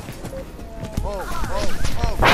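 Electronic chirps ring out in quick rising and falling glides.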